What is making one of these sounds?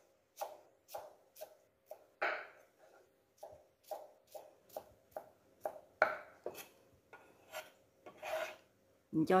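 A knife chops rapidly on a wooden board.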